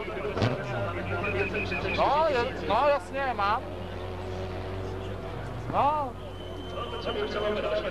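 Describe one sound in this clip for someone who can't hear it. A car's tyres skid and scrabble on loose gravel.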